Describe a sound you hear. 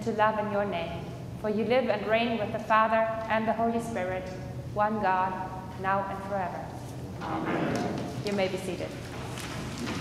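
A middle-aged woman speaks calmly through a microphone in a large echoing hall.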